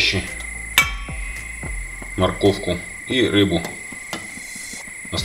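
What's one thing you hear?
A metal skimmer clinks against the side of a pot.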